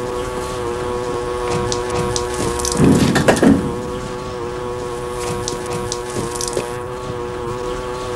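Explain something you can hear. Juice pours and trickles into a metal pot.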